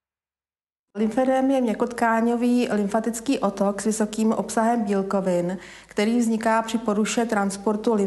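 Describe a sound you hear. A middle-aged woman speaks calmly and clearly into a close microphone.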